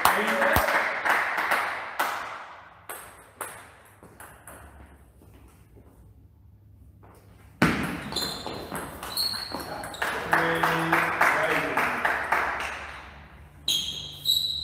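A table tennis ball clicks quickly back and forth between paddles and the table in a large echoing hall.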